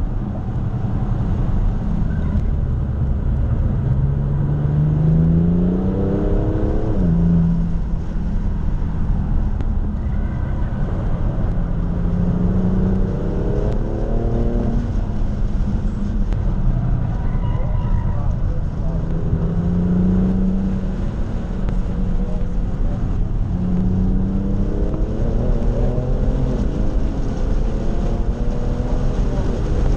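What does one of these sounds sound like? A car engine drones loudly from inside the cabin, revving up and down through the gears.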